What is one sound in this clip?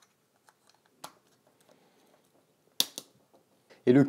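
Plastic parts of a plug adapter click together.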